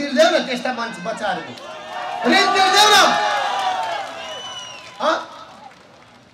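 A middle-aged man speaks forcefully into a microphone through loudspeakers, with echo.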